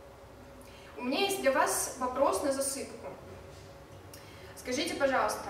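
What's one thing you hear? A young woman speaks calmly and clearly nearby.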